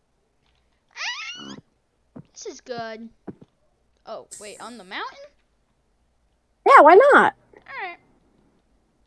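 A boy talks with animation into a close microphone, in short bursts.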